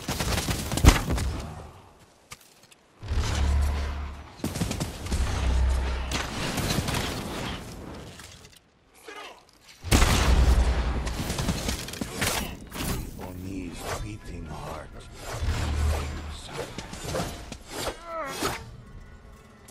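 Swords clash and slash in a fierce fight.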